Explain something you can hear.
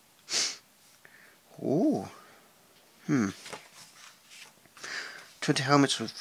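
Paper rustles as pages are handled and turned.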